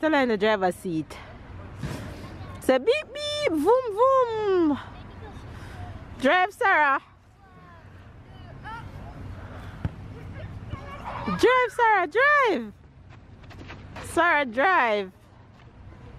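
A toddler girl squeals and babbles in a high voice nearby.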